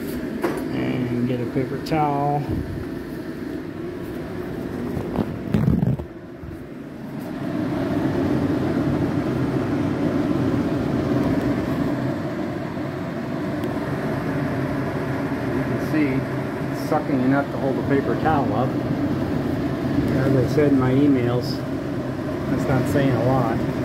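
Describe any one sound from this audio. Paper towel rustles and crinkles as it is handled.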